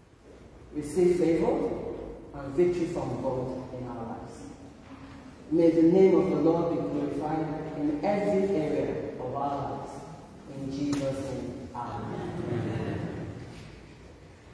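A woman sings into a microphone in a large echoing hall.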